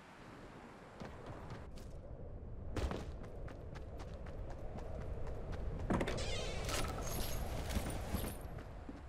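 Footsteps run quickly over grass and a wooden floor.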